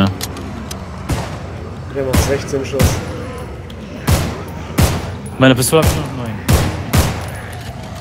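A pistol fires several loud, sharp shots in quick bursts.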